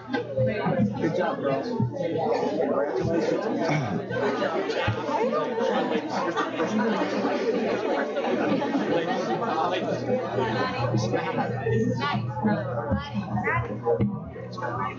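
A crowd of people chatter in an echoing hall.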